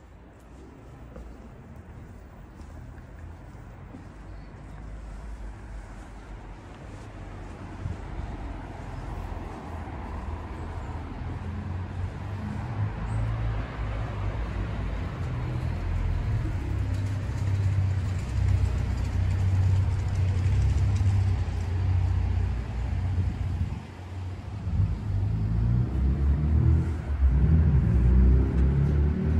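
Footsteps tap slowly on stone paving outdoors.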